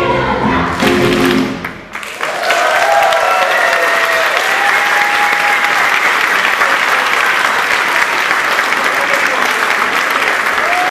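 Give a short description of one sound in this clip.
A large group of children claps loudly in an echoing hall.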